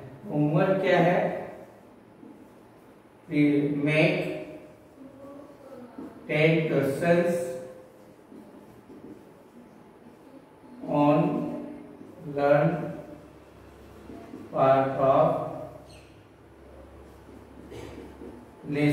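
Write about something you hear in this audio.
A man speaks in short, clear phrases, as if teaching, close by.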